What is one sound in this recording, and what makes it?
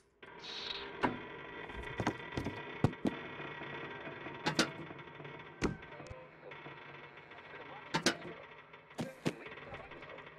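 Light hollow objects knock and thud as they are picked up and set down.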